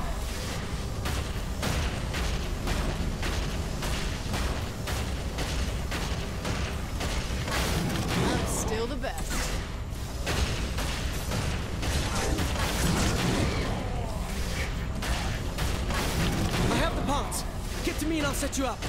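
A mech's heavy guns fire rapid bursts of shots.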